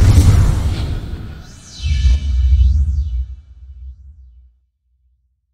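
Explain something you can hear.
A whooshing electric crackle sweeps in with a deep boom and fades.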